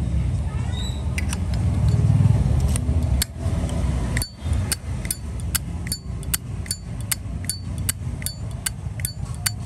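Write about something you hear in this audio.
A metal lighter lid clicks open and snaps shut again and again.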